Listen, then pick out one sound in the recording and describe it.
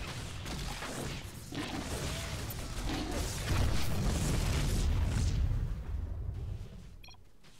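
Game battle effects crackle and boom.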